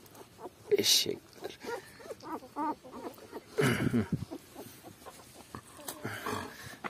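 Newborn puppies whimper and squeal close by.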